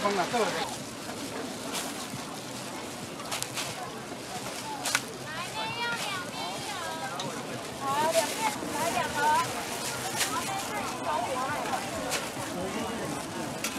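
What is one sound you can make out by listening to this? Noodles are tossed and stirred in a pan.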